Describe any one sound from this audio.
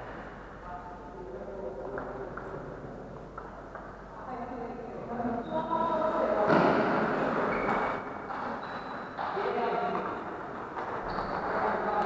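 A table tennis ball clicks back and forth on paddles and a table in a large echoing hall.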